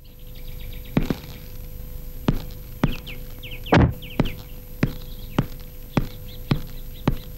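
A man's footsteps crunch slowly on gravel outdoors.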